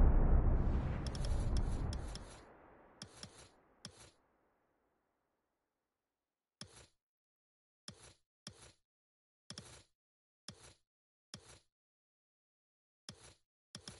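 Short menu clicks tick at irregular intervals.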